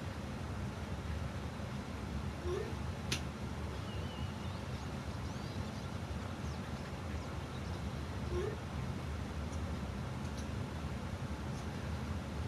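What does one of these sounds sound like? A river rushes steadily over rocks.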